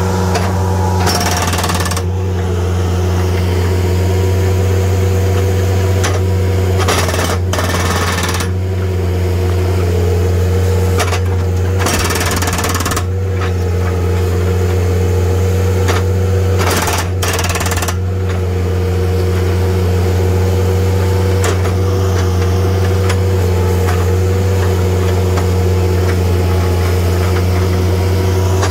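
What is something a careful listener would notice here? A diesel engine runs with a steady low drone.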